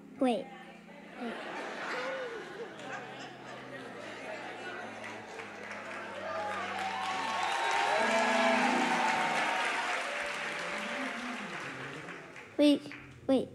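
An audience cheers and applauds.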